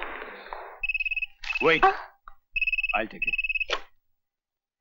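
A telephone rings with sharp electronic trills.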